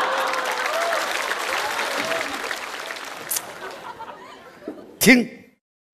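An elderly man laughs.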